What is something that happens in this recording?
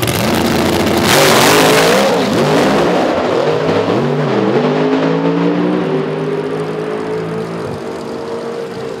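A V8 drag car launches at full throttle and roars off down the strip.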